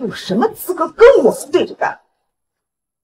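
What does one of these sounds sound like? A woman speaks sharply and with anger.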